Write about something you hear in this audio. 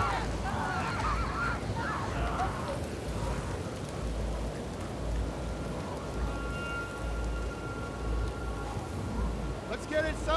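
A fire roars and crackles close by.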